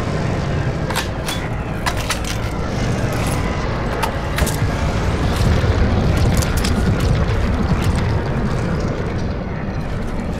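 A rifle clicks and rattles as it is handled.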